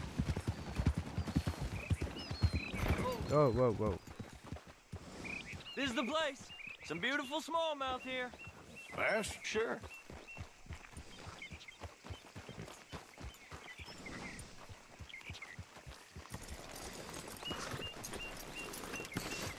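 Horse hooves clop on stony ground.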